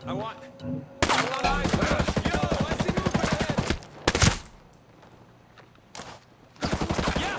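Rapid rifle fire rattles in loud bursts.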